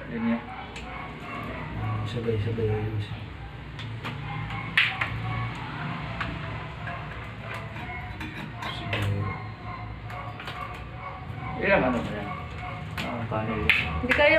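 Small tools click and tap against a metal box.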